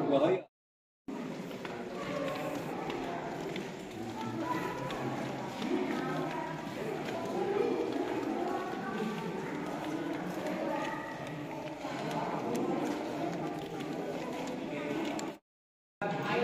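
A crowd of people chatters in a large echoing space.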